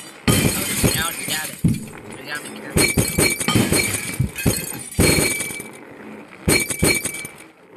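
Glass panes shatter with loud crashes, again and again.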